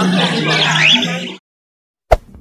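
Cockatiels chirp and squawk close by.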